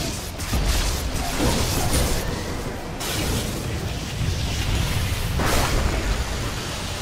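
Magic spells crackle and blast.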